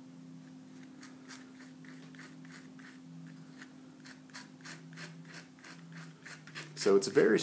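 A palette knife scrapes and spreads thick paint across paper in short, repeated strokes.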